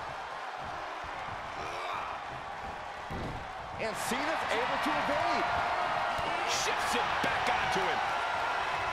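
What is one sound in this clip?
A large crowd cheers loudly in a big arena.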